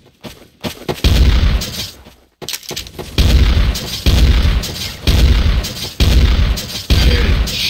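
A shotgun fires loud booming shots again and again.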